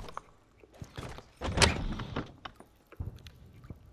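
A wooden door swings open with a heavy thud.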